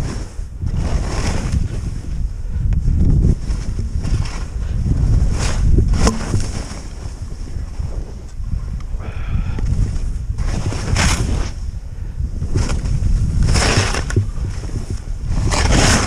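Wind rumbles loudly against a moving microphone.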